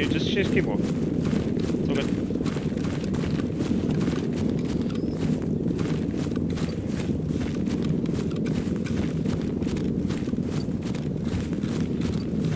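Footsteps swish quickly through tall grass.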